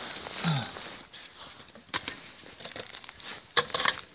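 Metal rods clatter against one another.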